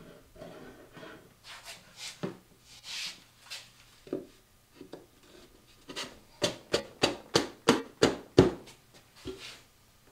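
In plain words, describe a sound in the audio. Wooden boards knock and tap against each other.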